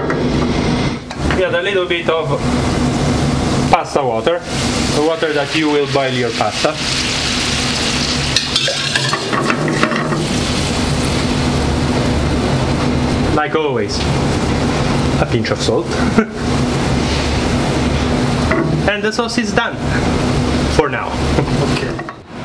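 Liquid simmers and bubbles in a pan.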